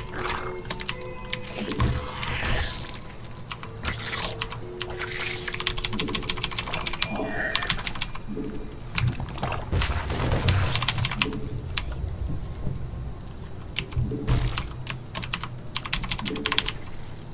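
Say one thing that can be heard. Short game sound effects click and chirp throughout.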